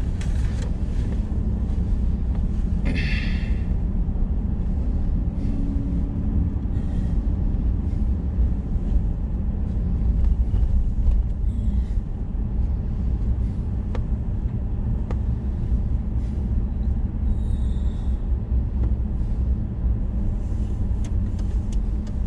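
A car engine rumbles steadily inside the car.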